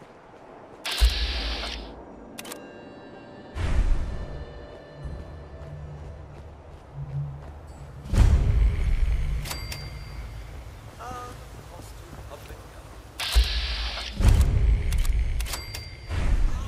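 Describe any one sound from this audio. A laser gun fires in loud, sudden bursts.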